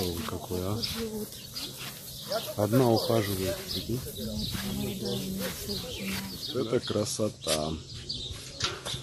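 A woman talks nearby in a calm voice.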